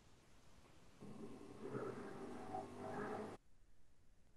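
A man speaks quietly over an online call.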